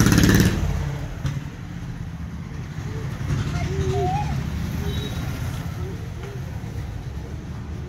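Small plastic training wheels rattle and rumble over concrete as a child's bicycle rolls along.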